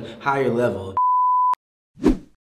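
A steady test tone beeps.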